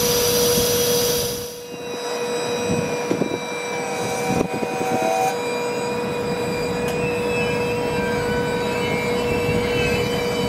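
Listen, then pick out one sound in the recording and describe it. Train wheels squeal and whine against the rails.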